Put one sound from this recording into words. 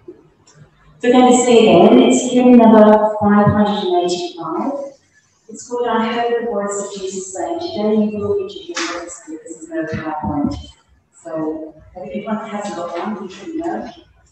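A woman reads aloud at a lectern, heard through a microphone in an echoing hall.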